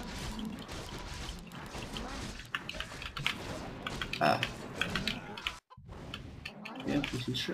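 Magic spells burst and crackle.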